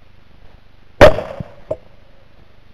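A rifle fires a single loud shot close by, with a short echo.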